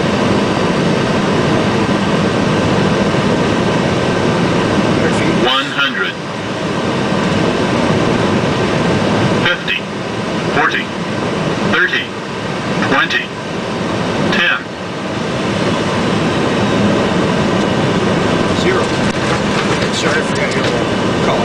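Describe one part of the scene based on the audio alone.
A jet airliner's engines and rushing air roar steadily.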